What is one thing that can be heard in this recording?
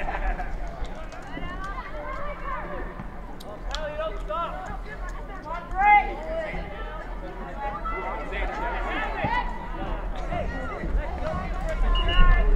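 Young women shout and call to one another across an open outdoor field.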